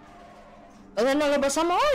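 A young woman speaks loudly and with animation close to a microphone.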